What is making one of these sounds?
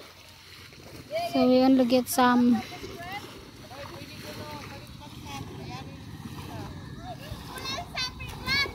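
Water splashes as a person wades quickly through a shallow pond.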